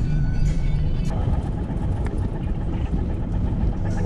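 A car engine hums steadily as the car drives.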